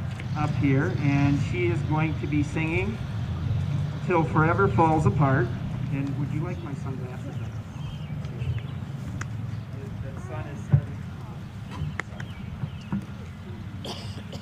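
A man speaks over a loudspeaker outdoors.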